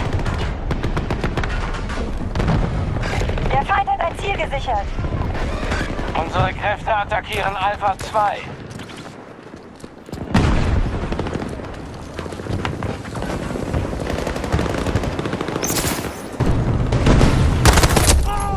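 Rapid gunfire rattles close by in bursts.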